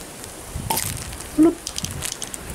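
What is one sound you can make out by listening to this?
A swing-top bottle pops open.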